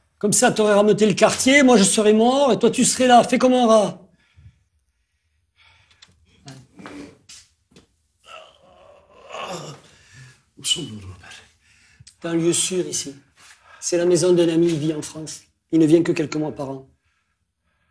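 A middle-aged man speaks tensely and close by.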